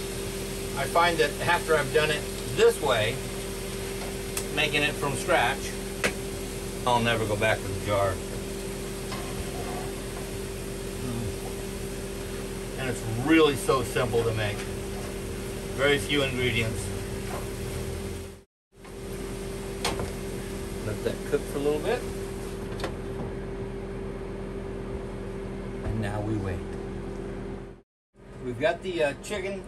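A middle-aged man talks calmly and clearly into a nearby microphone.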